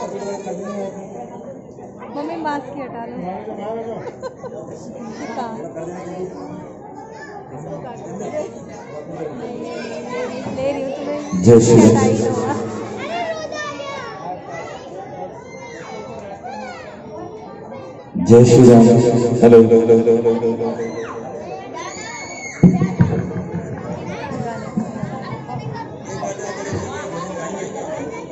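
A crowd of women chatters all around.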